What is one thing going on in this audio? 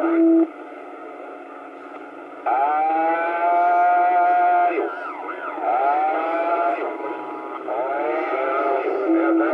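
A radio receiver hisses with static.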